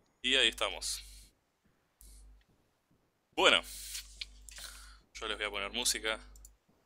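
A man speaks with animation through a headset microphone on an online call.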